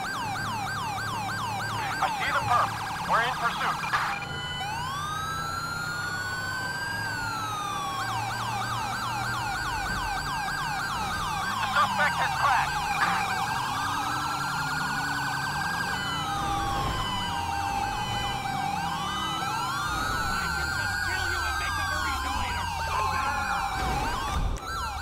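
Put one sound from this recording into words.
A police siren wails and yelps throughout.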